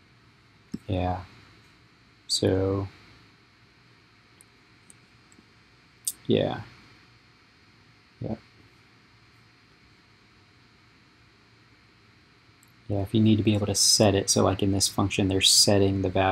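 A woman speaks calmly into a close microphone, in short bursts and then at length.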